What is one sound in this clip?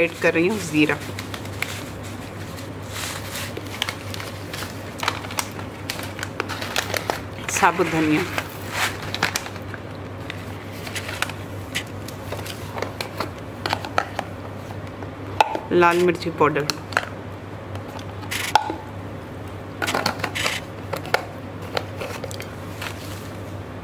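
Plastic spice packets crinkle and rustle close by.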